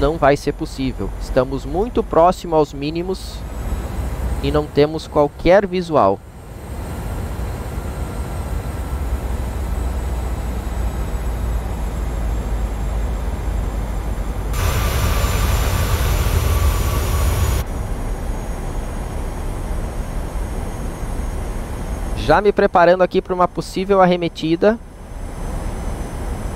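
Jet engines rumble steadily.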